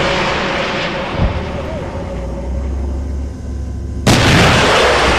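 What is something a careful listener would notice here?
Fire roars from a burning vehicle.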